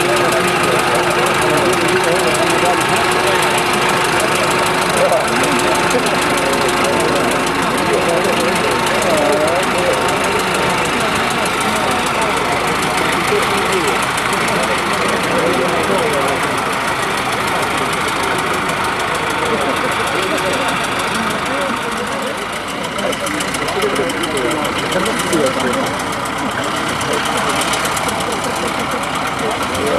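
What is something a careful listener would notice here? A crowd chatters outdoors in the distance.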